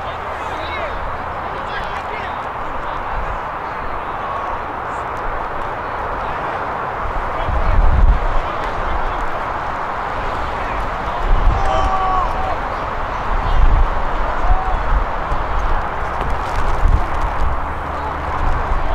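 Young players shout to each other in the distance.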